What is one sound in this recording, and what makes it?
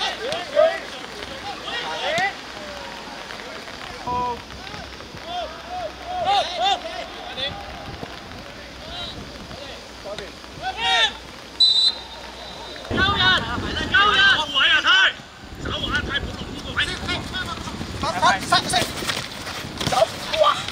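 Young men shout to each other across an open pitch.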